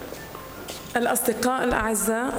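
A woman speaks into a microphone with animation, close by.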